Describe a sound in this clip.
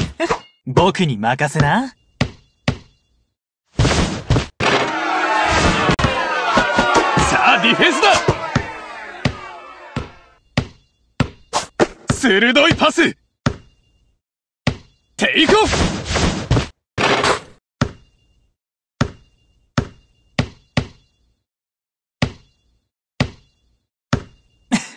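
A basketball bounces repeatedly on a hard court.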